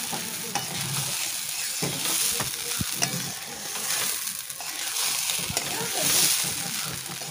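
Rice grains rustle and hiss as they are tossed in a wok.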